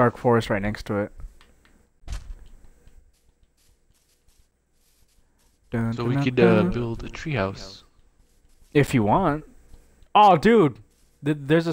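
Footsteps crunch softly on grass.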